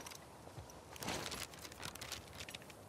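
A paper map rustles.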